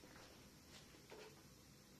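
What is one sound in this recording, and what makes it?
Footsteps shuffle on a wooden floor close by.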